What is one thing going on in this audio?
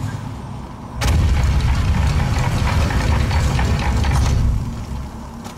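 A heavy stone door grinds and rumbles open.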